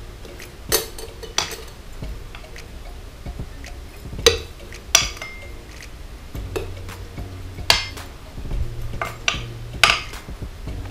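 A metal scoop scrapes and taps against gravel and glass.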